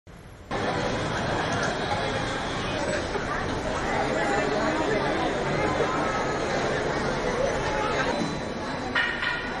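A crowd of men, women and children chatter and call out excitedly nearby.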